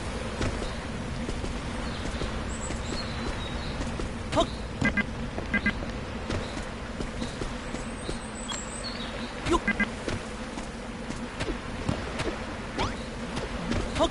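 Light footsteps patter quickly over grass and ground.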